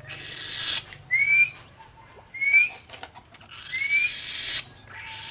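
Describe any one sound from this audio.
A boy whistles short rising calls.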